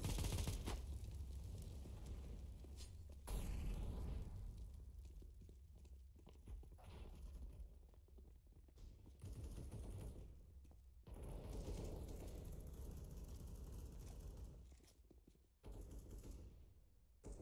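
Footsteps run quickly over hard stone floors.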